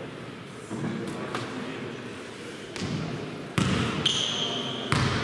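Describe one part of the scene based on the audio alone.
Players' shoes thud and squeak on a court in a large echoing hall.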